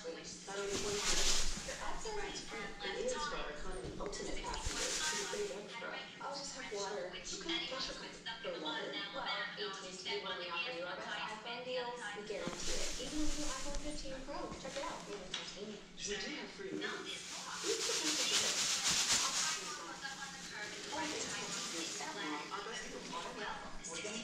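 A television plays voices in the room.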